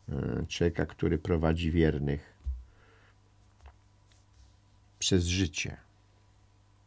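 An elderly man speaks calmly and close to a microphone, in short bursts.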